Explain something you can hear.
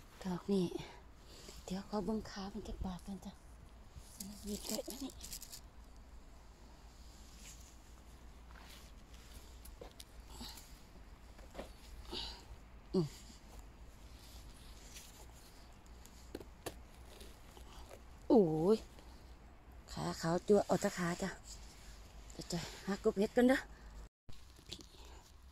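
Grass rustles softly as a hand brushes through it.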